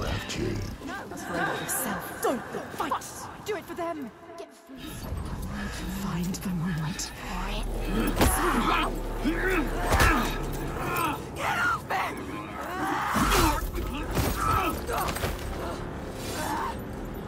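Heavy footsteps and scuffling sound as men drag someone along.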